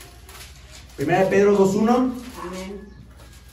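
A young man reads aloud calmly into a microphone.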